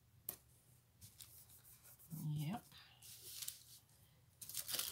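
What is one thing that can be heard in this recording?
Paper rustles and slides as sheets are handled.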